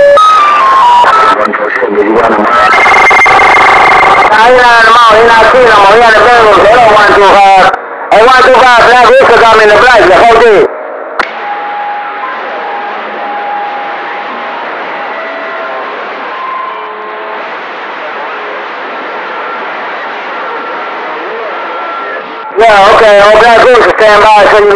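A radio loudly plays warbling, whistling signals.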